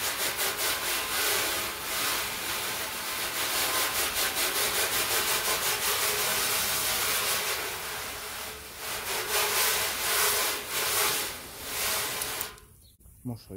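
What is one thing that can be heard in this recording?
A hose spray nozzle hisses as water sprays onto a metal panel.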